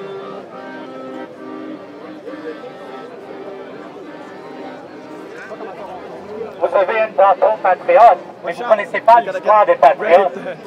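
A crowd chants and shouts outdoors.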